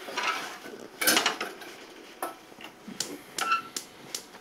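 Metal utensils clatter and clink against pans.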